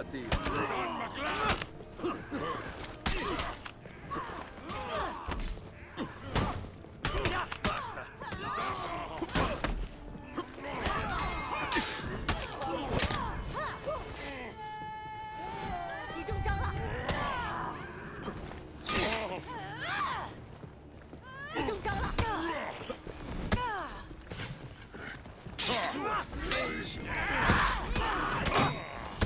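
Swords clash and strike again and again.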